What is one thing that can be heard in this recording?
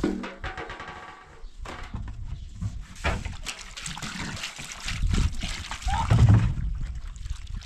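Wet cloth sloshes and squelches as it is scrubbed in water.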